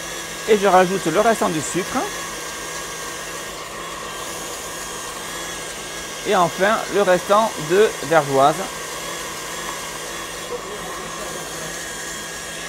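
A stand mixer whirs steadily.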